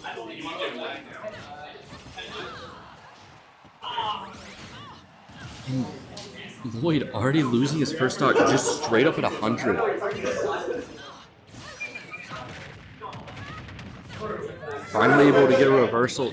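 Punches and blasts from a fighting game crack and whoosh.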